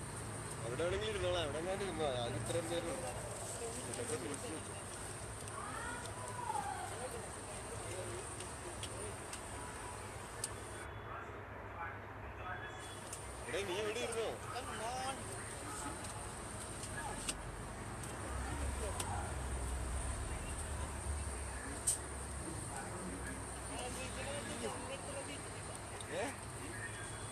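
A young man talks casually into a phone microphone, close by.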